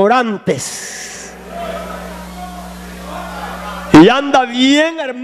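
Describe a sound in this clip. A man preaches loudly and passionately into a microphone, his voice echoing through a hall.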